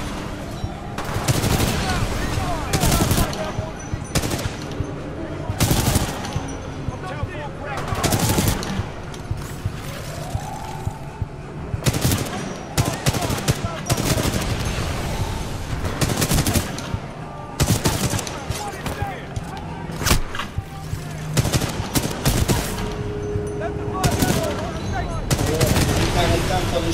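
Gunfire rattles in repeated loud bursts.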